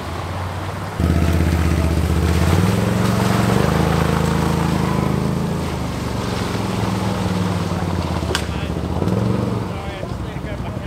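A quad bike engine roars close by and then moves away.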